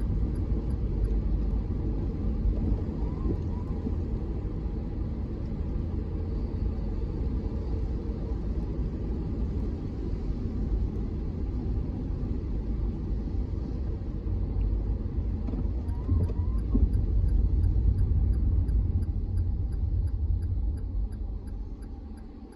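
A car drives on a wet road, heard from inside.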